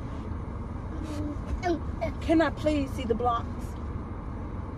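A toddler babbles and squeals up close.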